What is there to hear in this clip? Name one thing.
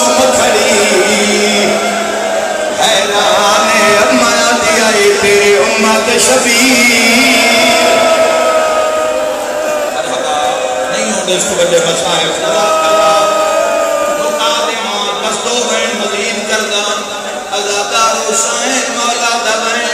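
A crowd of men chant along.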